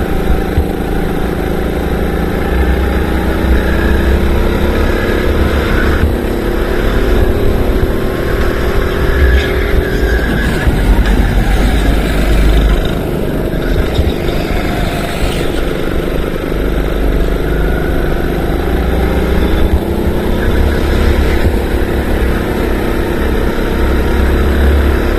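A kart engine buzzes loudly close by, its pitch rising and falling with the throttle.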